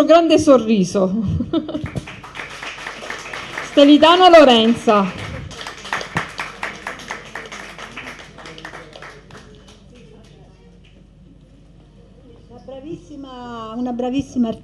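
A woman speaks into a microphone with animation, heard through loudspeakers.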